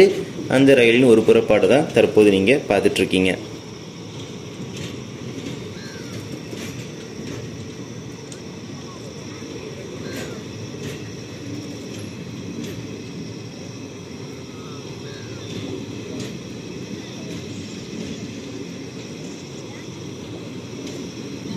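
A passenger train rolls steadily past, rumbling.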